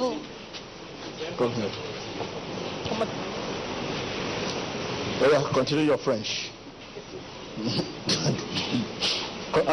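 A man speaks loudly with animation through a microphone in a large echoing hall.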